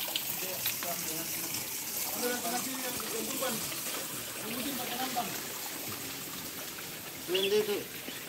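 Voices of a crowd murmur in the background outdoors.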